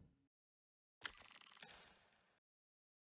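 A game interface plays a short bright rattling chime.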